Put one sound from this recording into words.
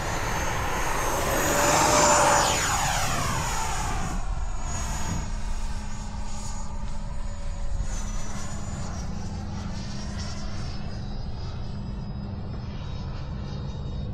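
A small jet engine roars and whines loudly as it streaks close past, then fades into the distance.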